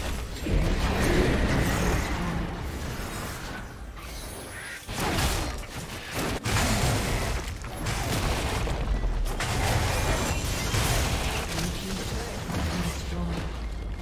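Spell effects crackle and burst during a fight.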